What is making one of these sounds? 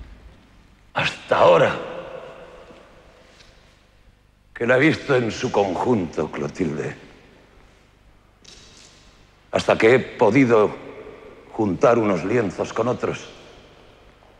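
A man declaims loudly in a large echoing hall.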